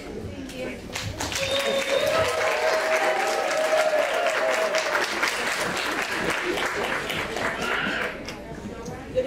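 A crowd cheers and laughs.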